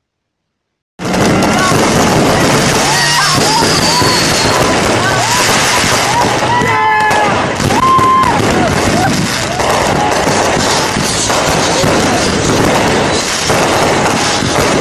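Fireworks crackle and pop loudly.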